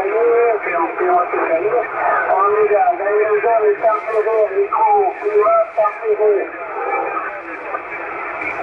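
A man speaks steadily through a crackly radio loudspeaker.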